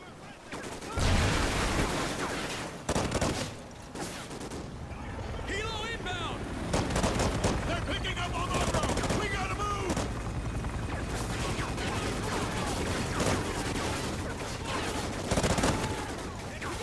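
A rifle fires in loud bursts of shots.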